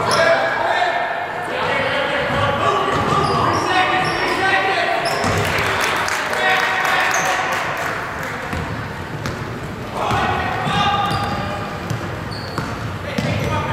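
A crowd of spectators cheers and calls out in a large echoing gym.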